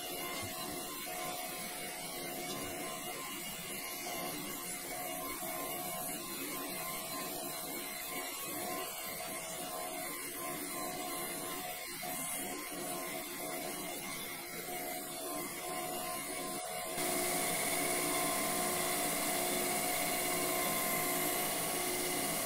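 A machine motor hums and whines steadily.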